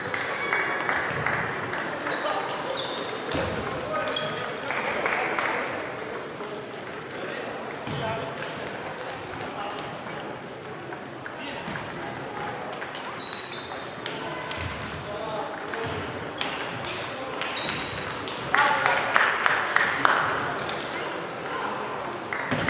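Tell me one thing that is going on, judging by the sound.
A crowd of people murmurs and calls out in an echoing hall.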